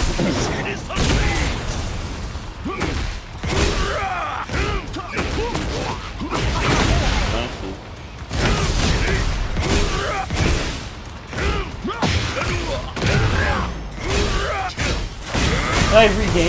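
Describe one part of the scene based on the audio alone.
Electric energy crackles and whooshes around the fighters.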